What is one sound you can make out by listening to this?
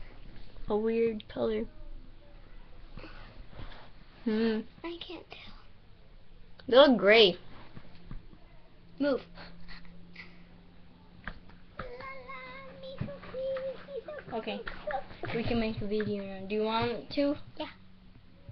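A teenage girl talks casually and close by, with pauses.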